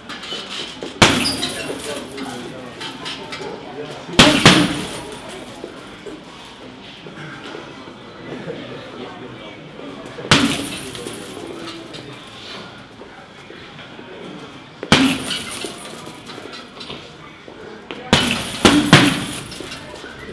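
Gloved punches thud against a heavy punching bag.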